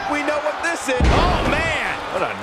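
A heavy body slams onto a wrestling mat with a thud.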